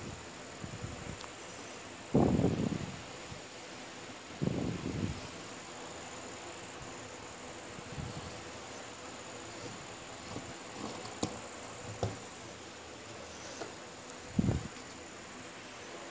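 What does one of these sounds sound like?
Scissors snip through fabric in short bursts.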